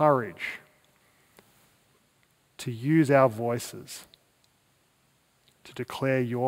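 A man speaks calmly through a headset microphone, with pauses between phrases.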